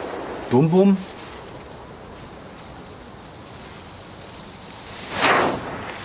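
A firework fuse fizzes and sputters.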